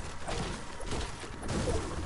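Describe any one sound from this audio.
A pickaxe thuds against a tree trunk.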